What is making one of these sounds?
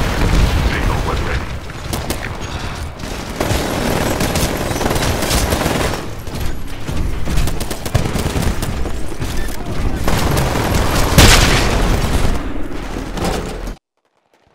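A heavy mech's rocket launcher fires in bursts.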